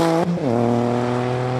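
A racing car engine drops sharply in pitch as the car shifts gear.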